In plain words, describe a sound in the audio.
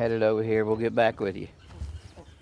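An elderly man talks close by.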